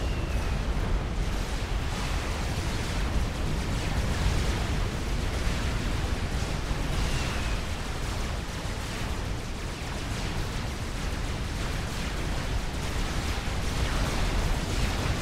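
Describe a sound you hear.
Weapons fire in rapid bursts.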